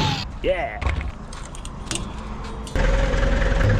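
A metal latch clicks and rattles.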